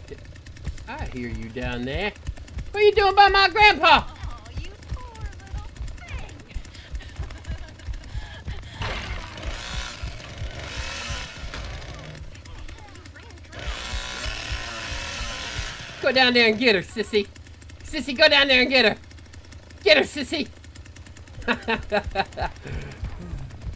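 A chainsaw engine idles with a low, steady rumble.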